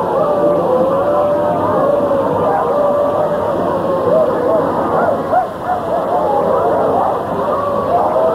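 A large crowd of men and women sings together outdoors.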